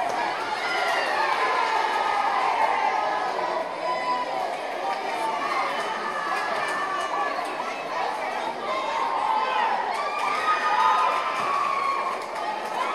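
A crowd chatters and cheers loudly in a large echoing hall.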